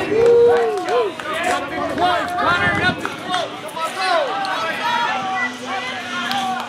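Several young men shout and chatter loudly outdoors.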